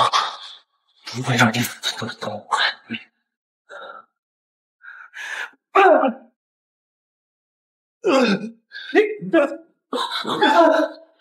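A young woman speaks tearfully nearby.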